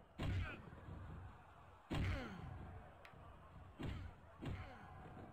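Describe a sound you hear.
Heavy thuds of bodies hitting a wrestling ring mat sound in bursts.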